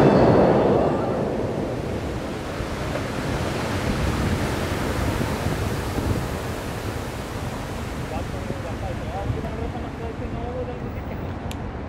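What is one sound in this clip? Jets of a large fountain roar and hiss with rushing water, then slowly fade.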